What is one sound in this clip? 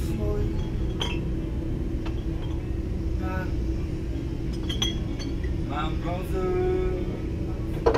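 Rubbish rustles and knocks as someone rummages through it.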